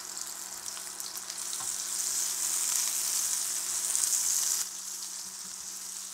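A spatula scrapes and stirs tomatoes in a pan.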